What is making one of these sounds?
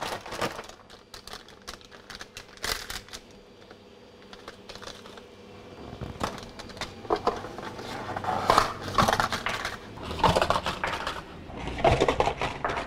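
Plastic wrappers crinkle and rustle as they are handled.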